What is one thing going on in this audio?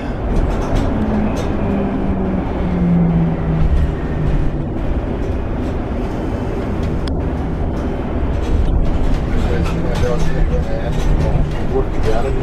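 A bus engine's pitch changes as it shifts gears.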